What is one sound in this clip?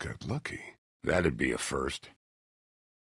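An elderly man speaks with a rough voice.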